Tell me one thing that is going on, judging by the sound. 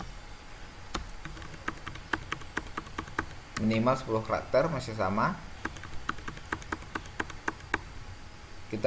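Keys on a keyboard click quickly in bursts.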